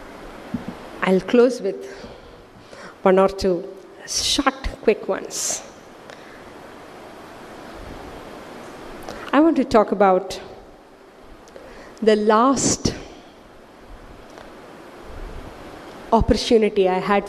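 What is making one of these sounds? A woman speaks through a microphone in bursts with long pauses, her voice echoing slightly in a room.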